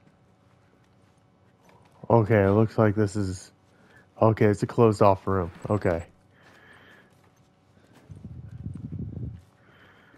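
Clothes rustle as a man crawls across a littered floor.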